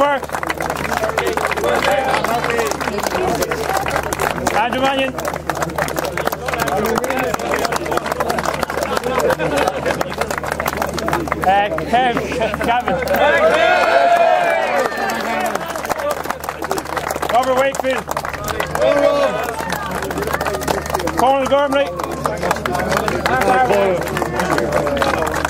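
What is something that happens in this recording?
A crowd claps steadily outdoors.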